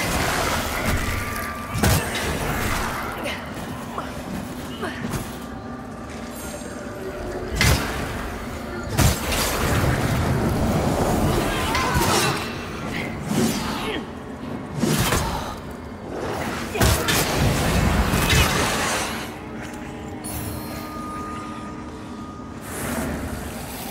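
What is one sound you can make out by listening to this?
Magic bursts crackle and whoosh.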